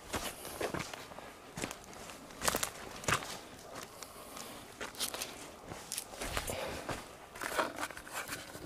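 Footsteps crunch on dry twigs and leaves.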